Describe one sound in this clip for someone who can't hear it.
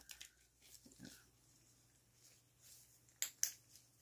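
Rubber gloves squeak and rustle close up.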